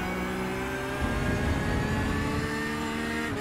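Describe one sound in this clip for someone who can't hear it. Tyres rumble over a kerb.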